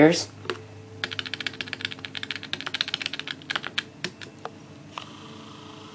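Fingers tap rapidly on calculator buttons, clicking softly.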